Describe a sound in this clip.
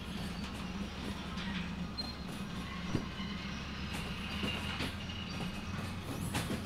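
Train wheels clack over rail joints now and then.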